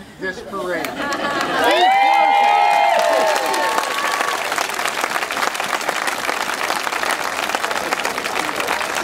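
A large crowd claps hands.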